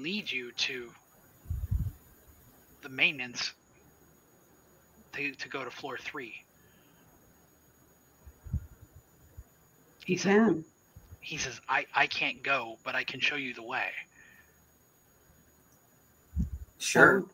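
Adults talk in turns over an online call, with short pauses between them.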